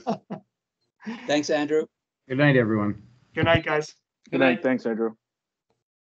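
A woman laughs over an online call.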